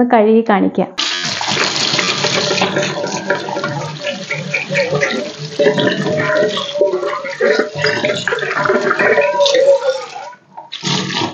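Tap water runs and splashes into a metal pot in a sink.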